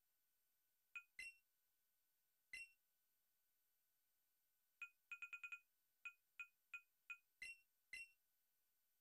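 Short electronic menu beeps chime one after another.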